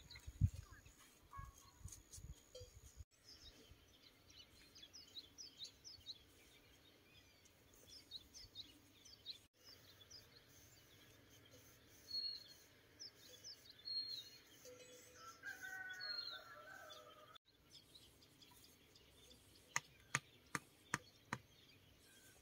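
Bamboo sticks knock and clatter against each other.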